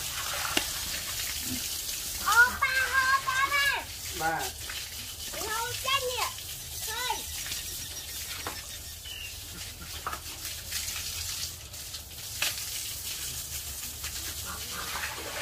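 Water sprays from a hose onto pigs and a concrete floor.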